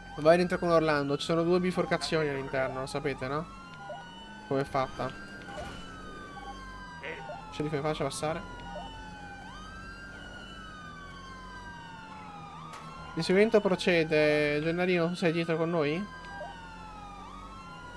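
A police siren wails in a steady rising and falling sweep.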